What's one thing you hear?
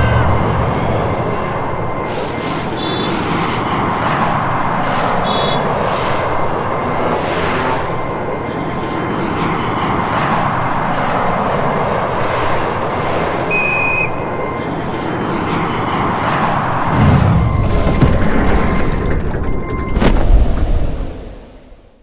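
A jetpack roars with a steady rushing whoosh.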